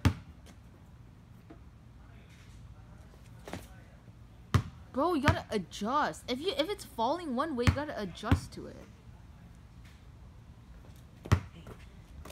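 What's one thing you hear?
A basketball bounces sharply on hard paving.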